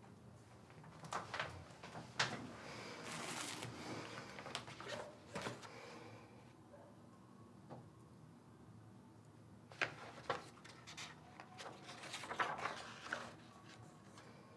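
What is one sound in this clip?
Paper rustles as pages are handled and turned.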